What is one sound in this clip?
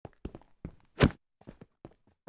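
A wolf yelps when struck.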